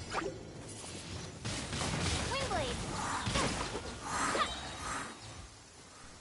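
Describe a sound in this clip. Magic spells burst and crackle in quick flashes.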